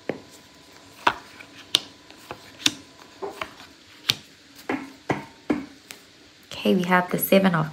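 Cards slap lightly onto a table one after another.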